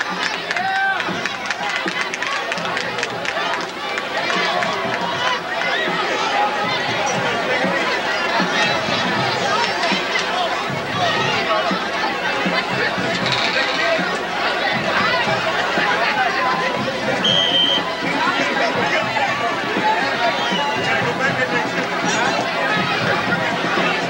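Football players shout and call out to each other outdoors.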